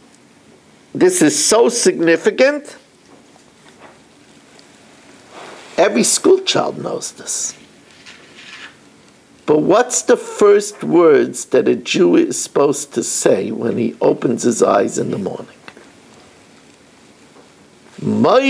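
An older man speaks calmly and close by, in short bursts.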